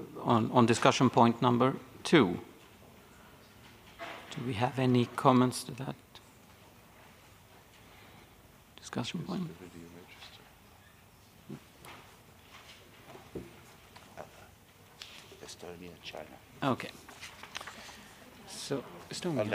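A middle-aged man speaks calmly into a microphone, in pauses.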